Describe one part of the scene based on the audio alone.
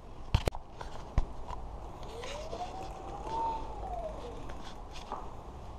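A bicycle's rear wheel spins freely with a light whir.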